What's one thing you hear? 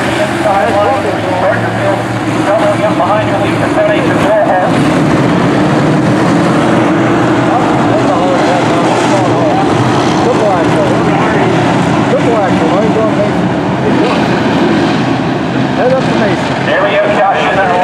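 A pack of race car engines roars loudly around a track, revving up and down.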